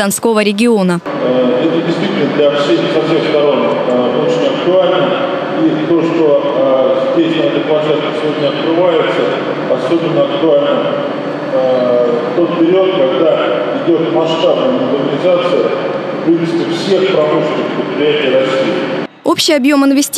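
A middle-aged man speaks steadily into a microphone, amplified in a large echoing hall.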